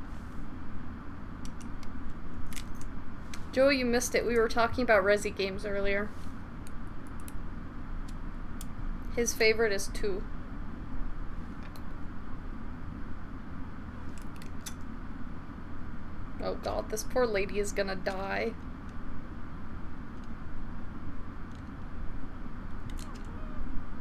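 A pistol clicks as it is handled.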